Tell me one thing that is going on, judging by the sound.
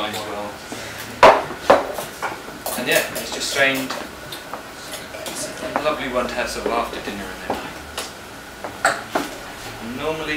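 Glasses clink on a table.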